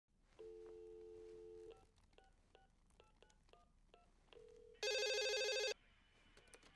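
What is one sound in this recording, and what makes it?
A phone rings.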